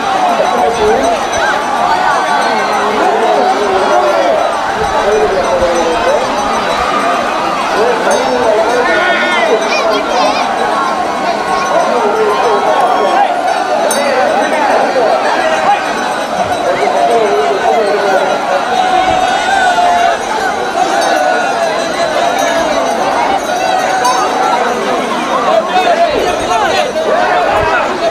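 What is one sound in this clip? A large crowd of men chants and shouts outdoors.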